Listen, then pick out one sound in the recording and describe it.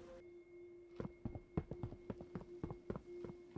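Quick light footsteps tap on stone.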